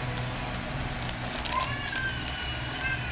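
A plastic bag crinkles in a small child's hands.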